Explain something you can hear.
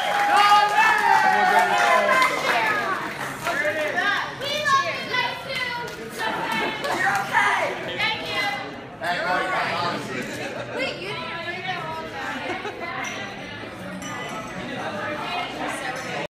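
A crowd of men and women sings loudly together.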